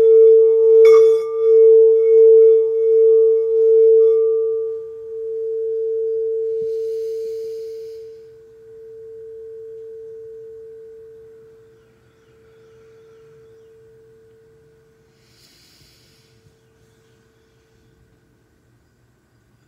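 A crystal singing bowl rings with a steady, humming tone that slowly fades.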